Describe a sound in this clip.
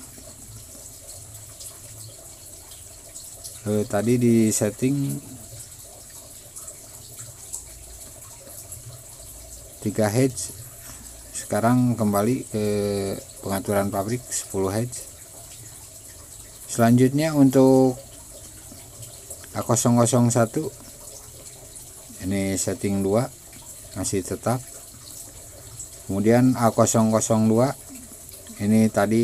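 A pointer taps plastic keypad buttons with soft clicks.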